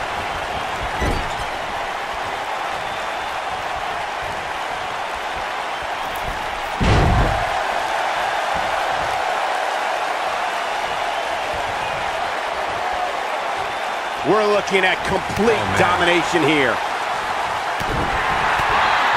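Heavy thuds hit a wrestling ring mat.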